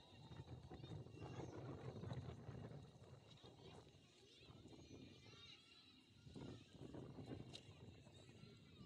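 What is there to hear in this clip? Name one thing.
Young players call out faintly across an open field.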